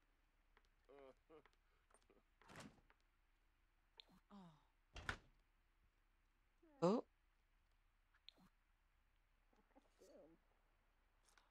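A young woman talks quietly into a microphone.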